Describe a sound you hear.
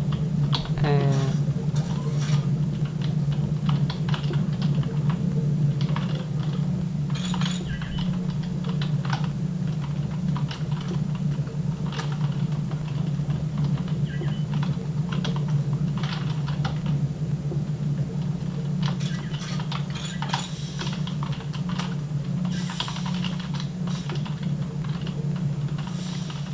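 Keys clatter on a keyboard as fingers press them rapidly.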